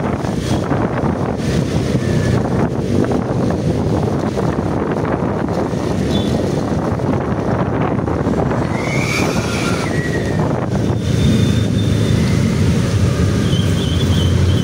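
A motorcycle engine hums steadily while riding.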